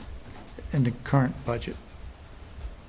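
A middle-aged man speaks briefly and calmly into a microphone.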